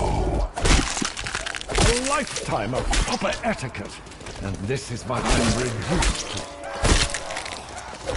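A knife slashes with wet thuds.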